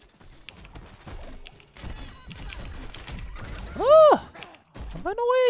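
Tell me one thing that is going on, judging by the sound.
Magic spells zap and crackle in quick bursts.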